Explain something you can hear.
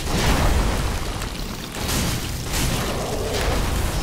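Lightning crackles and bursts in loud blasts.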